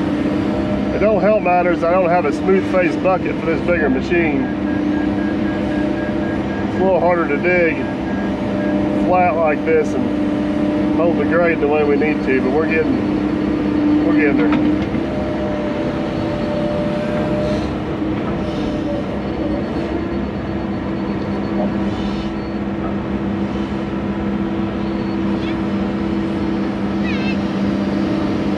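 An excavator engine hums steadily close by.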